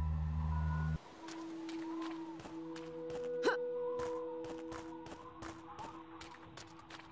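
Footsteps patter quickly on rocky ground.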